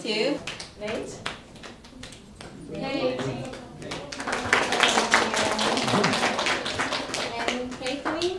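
A crowd of young men and women chat and laugh nearby in a room.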